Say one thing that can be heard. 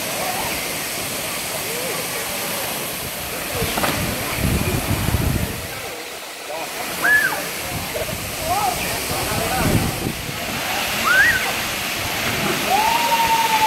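Young people chatter and call out across the water.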